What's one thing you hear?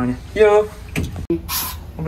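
A door handle turns and the latch clicks.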